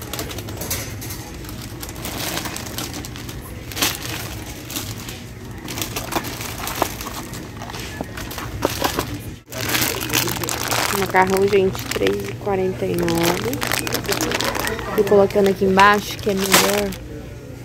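Packages drop with soft thuds into a wire shopping cart.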